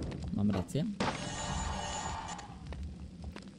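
A chest creaks open with a sparkling chime.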